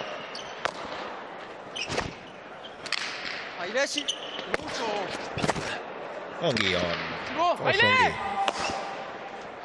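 A hard ball smacks against a wall and echoes through a large hall.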